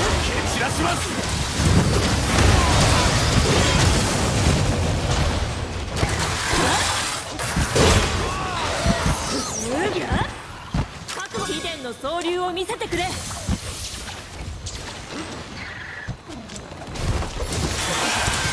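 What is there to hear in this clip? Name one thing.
A monster roars and thrashes in battle.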